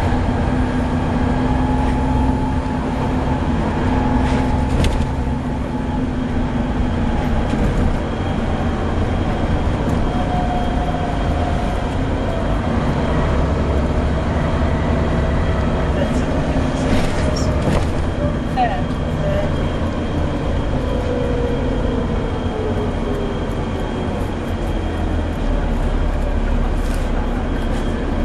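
The bus rattles and creaks over the road.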